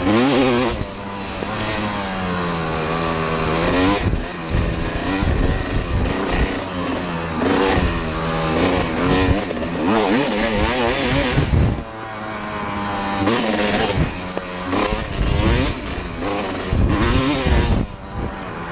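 Tyres crunch and skid on loose dirt.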